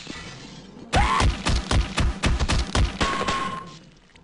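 A crowbar thuds repeatedly against something soft and wet.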